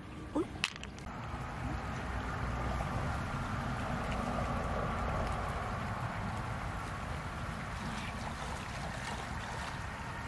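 Shallow stream water trickles and splashes.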